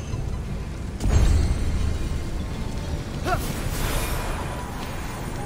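A short triumphant game chime rings out.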